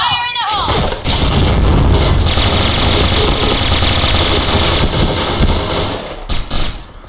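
Two submachine guns fire rapid bursts.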